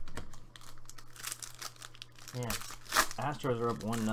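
A plastic foil wrapper crinkles as hands tear it open.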